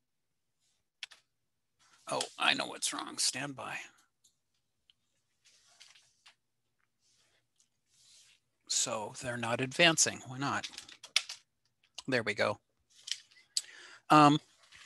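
An older man talks calmly over an online call, pausing between phrases.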